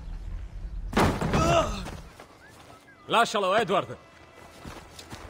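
A man shouts angrily at close range.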